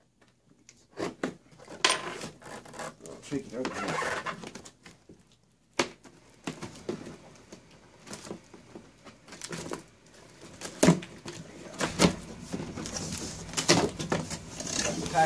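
Cardboard flaps rustle and scrape as a box is opened by hand.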